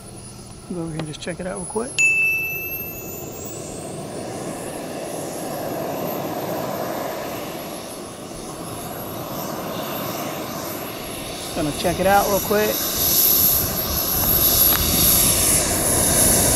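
A model jet's turbine engine whines steadily at close range.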